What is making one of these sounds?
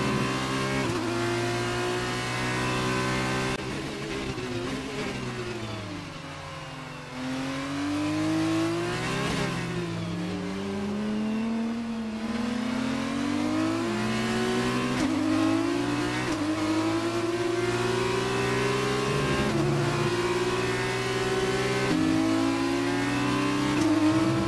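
A racing car engine whines at high revs, dropping in pitch under braking and rising again as it accelerates.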